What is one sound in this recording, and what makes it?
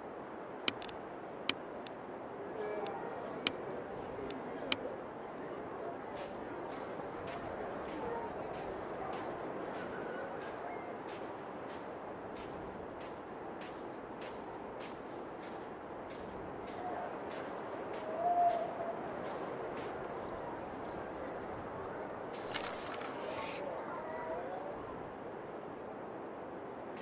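Wind howls steadily across snowy ground.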